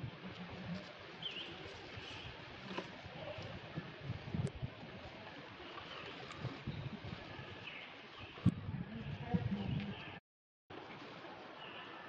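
Dry leaves rustle as monkeys move through them.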